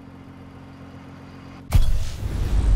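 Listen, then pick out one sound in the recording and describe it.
A sports car engine idles with a low, steady rumble.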